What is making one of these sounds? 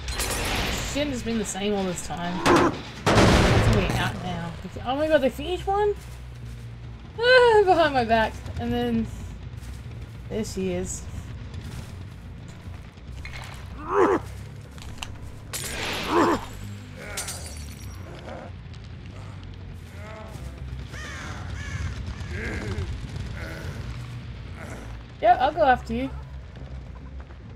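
A woman talks with animation into a microphone, in short bursts.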